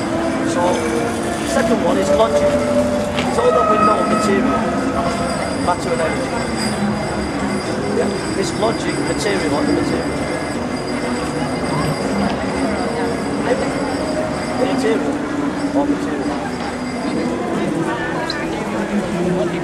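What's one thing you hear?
A middle-aged man talks with animation nearby.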